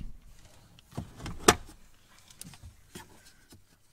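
A plastic panel clicks and knocks as a hand handles it.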